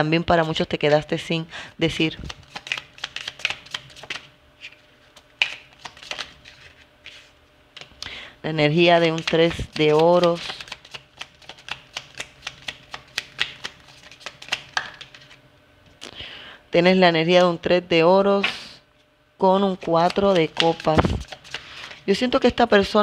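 Playing cards riffle and flick as they are shuffled by hand.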